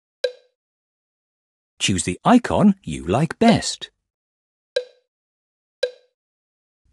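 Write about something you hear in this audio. A short, bright menu blip sounds a few times.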